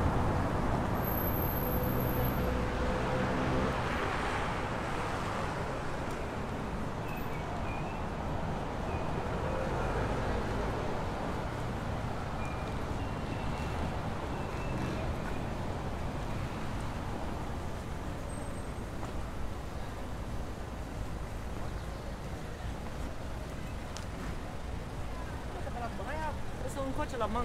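Footsteps tap on a stone pavement outdoors.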